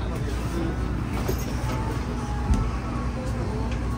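A hard suitcase bumps and scrapes as it is set down.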